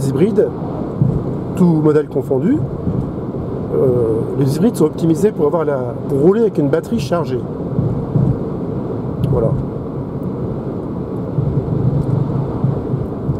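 A car drives steadily along a road, with a low rumble of tyres and wind.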